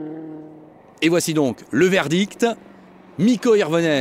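A rally car engine revs hard in quick, loud swoops as the car approaches.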